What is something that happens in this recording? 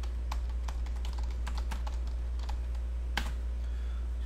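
Keys click on a keyboard as someone types.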